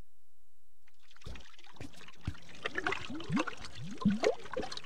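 Thick liquid pours and splashes steadily.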